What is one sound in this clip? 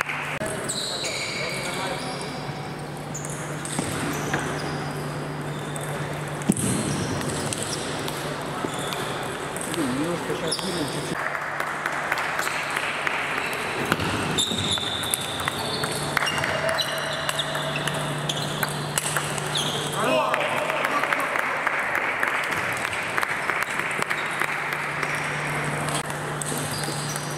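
A ping-pong ball clicks back and forth across a table in a large echoing hall.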